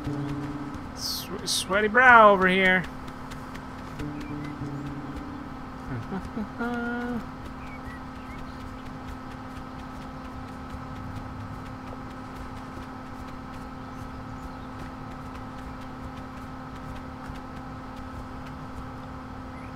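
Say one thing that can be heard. A goose honks loudly.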